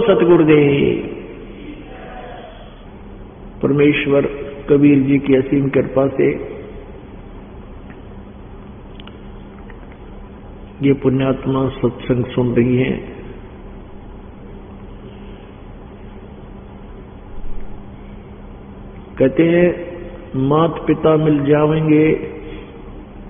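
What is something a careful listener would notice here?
An elderly man speaks calmly in short bursts, with long pauses between them.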